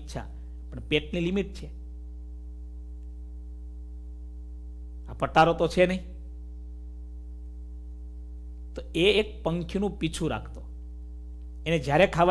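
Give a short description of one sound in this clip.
A man speaks calmly and slowly into a close microphone, with long pauses.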